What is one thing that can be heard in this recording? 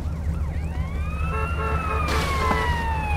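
A siren wails close by.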